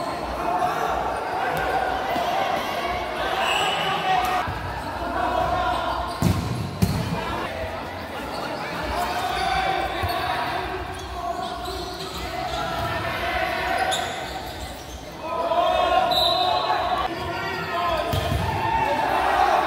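A ball is kicked with sharp thuds in an echoing hall.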